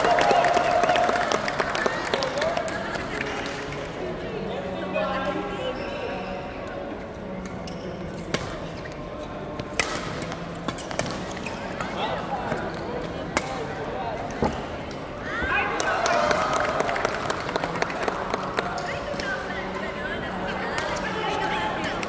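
Players' shoes squeak on the court floor.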